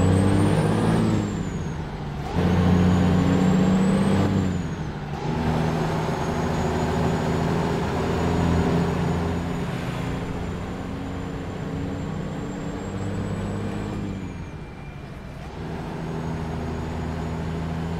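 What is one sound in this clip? A truck's diesel engine rumbles steadily, rising and falling as the gears change.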